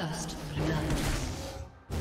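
A game announcer declares a first kill.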